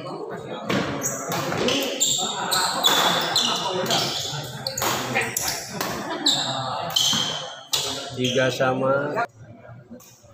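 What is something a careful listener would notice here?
Shoes squeak sharply on a wooden court.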